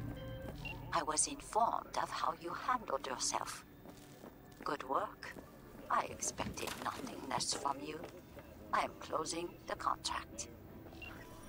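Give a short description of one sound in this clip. A woman speaks calmly over a phone line.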